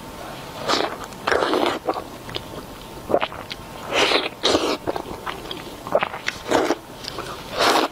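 A young woman chews and bites noisily into crispy food close to a microphone.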